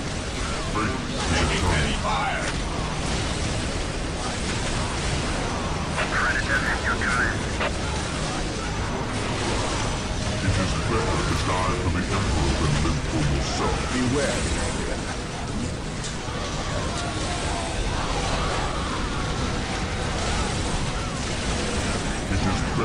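Energy beams zap and crackle.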